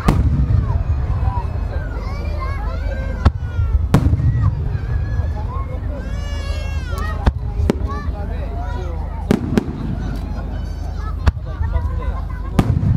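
Aerial firework shells burst with sharp booms far off.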